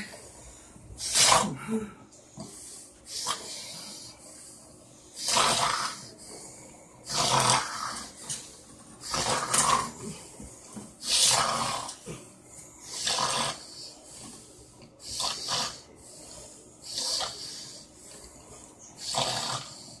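A man snores loudly in regular breaths.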